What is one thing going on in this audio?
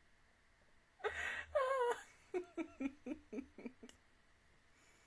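A young woman laughs loudly, close to a microphone.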